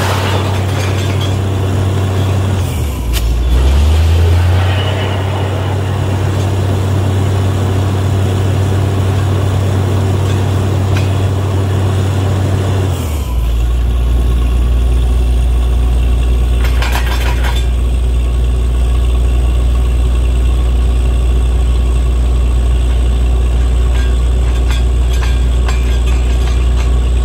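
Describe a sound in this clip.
A diesel engine on a drilling rig runs loudly and steadily, changing pitch now and then.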